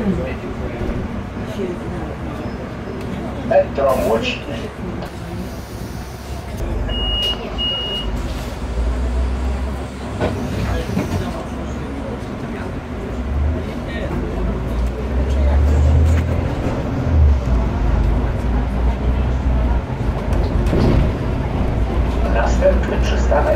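A bus engine rumbles low and grows louder as the bus pulls away and drives on.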